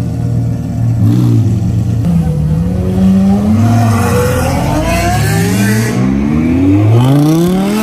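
A sports car engine revs up sharply several times.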